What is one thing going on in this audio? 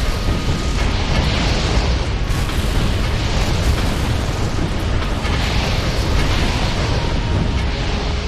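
Explosions crackle and boom in quick bursts.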